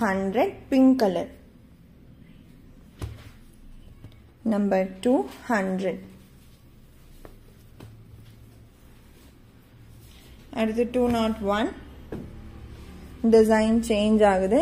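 Cloth rustles softly as hands fold and lift it.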